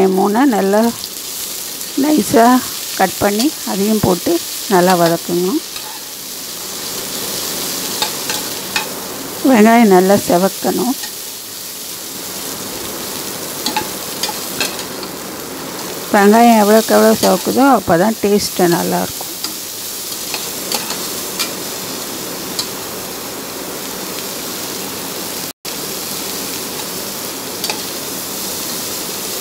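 Onions sizzle and crackle in hot oil.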